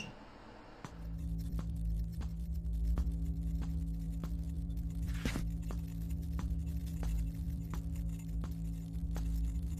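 Footsteps tread steadily along a hard floor.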